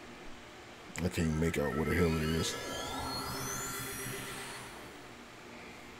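A shimmering magical whoosh rises and fades away.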